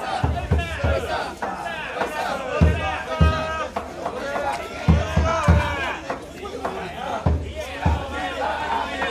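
A crowd of men chant and shout together in rhythm outdoors.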